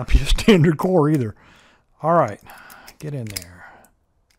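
A key slides into a lock with a soft scrape.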